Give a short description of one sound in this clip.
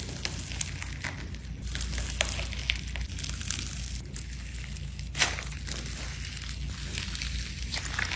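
Soft slime squishes and crinkles under fingers.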